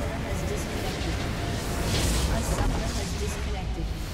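A structure explodes with a loud crash.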